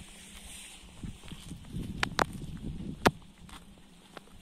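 Boots tread across wet grass.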